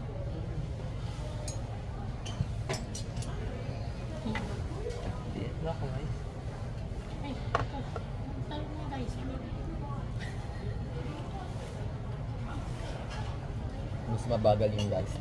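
Cutlery clinks and scrapes on plates.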